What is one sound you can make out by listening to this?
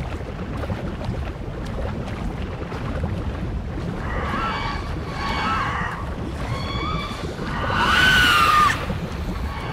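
Water splashes and churns steadily.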